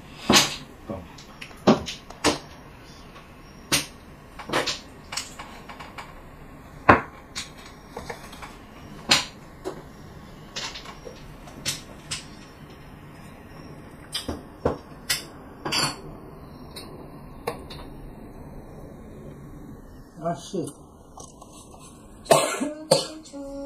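Mahjong tiles click and clack sharply against each other on a table.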